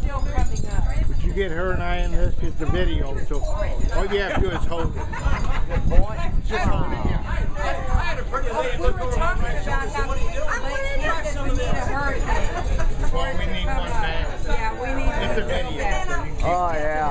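An elderly woman talks and laughs close by.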